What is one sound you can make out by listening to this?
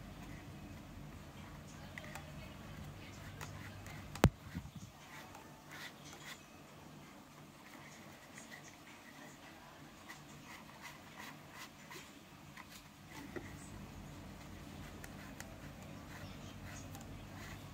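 A cord rustles and scrapes against plastic as it is braided by hand.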